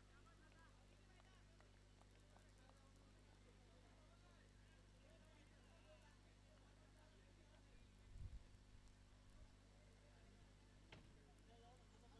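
Men call out faintly in the distance outdoors.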